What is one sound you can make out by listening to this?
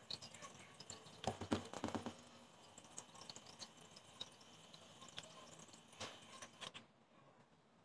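An electric hand mixer whirs steadily in a bowl.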